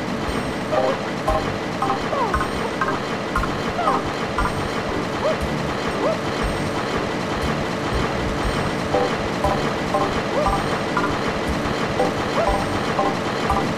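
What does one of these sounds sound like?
Conveyor belts rumble and clatter steadily.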